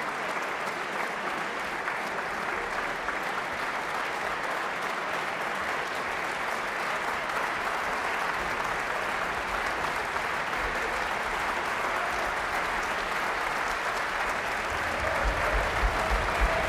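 A large audience applauds steadily in a big hall.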